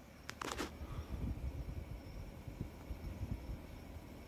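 An outdoor air conditioning fan hums steadily.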